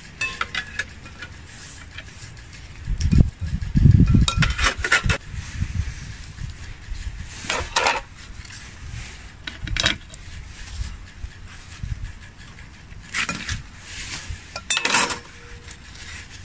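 Flatbread crinkles and rustles as it is handled.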